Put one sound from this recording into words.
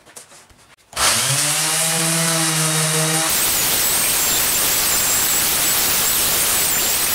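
An orbital sander whirs loudly and steadily, grinding against a hard surface.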